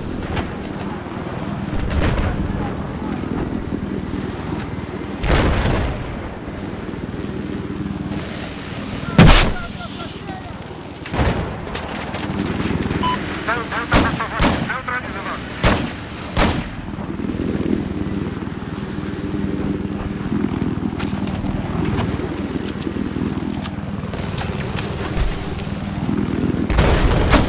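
A helicopter engine and rotor drone steadily and loudly.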